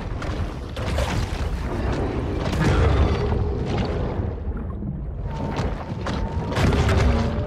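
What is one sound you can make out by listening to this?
A large shark bites and crunches into another sea creature.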